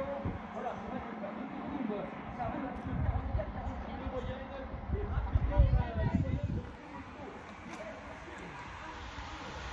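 Men and women chat at a distance outdoors.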